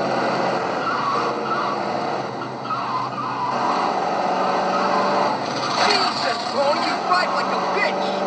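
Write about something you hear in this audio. A car engine roars steadily as it drives.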